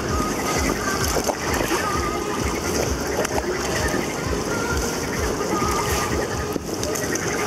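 Water splashes and rushes against an inflatable raft.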